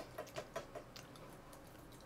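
A spoon clinks against a jar.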